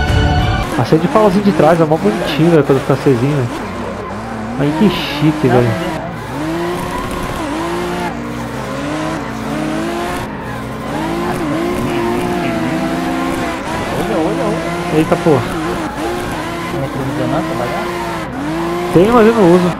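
A sports car engine revs hard and shifts gears.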